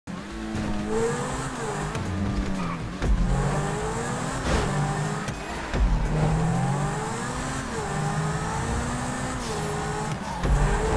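A sports car engine revs high, rising and dropping as it shifts gears.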